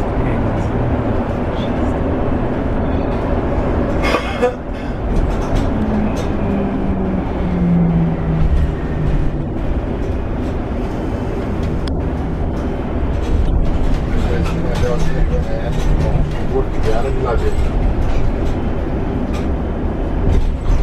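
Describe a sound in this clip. Tyres roll on the road.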